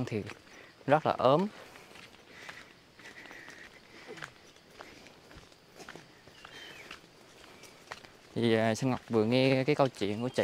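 Bare feet pad softly on a dirt path.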